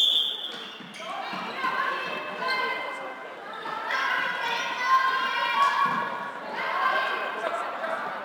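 Young women shout and call out to each other across the hall.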